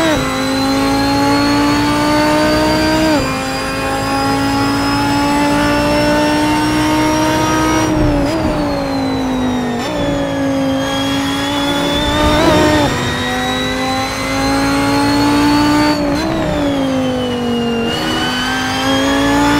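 A racing car engine roars loudly, its pitch climbing and dropping sharply with each gear change.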